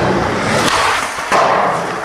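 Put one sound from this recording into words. A skateboard grinds along a metal rail.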